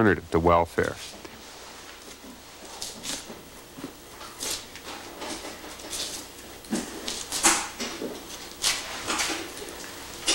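Hide tears and peels away from flesh with wet ripping sounds.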